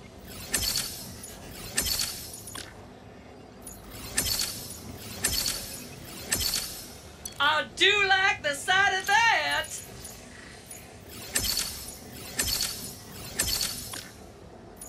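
Short electronic chimes sound as menu selections change.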